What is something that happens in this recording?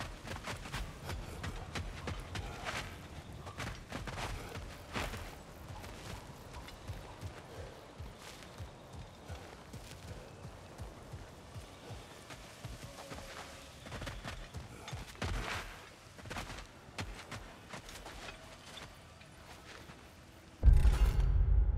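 Footsteps crunch on dirt and stone.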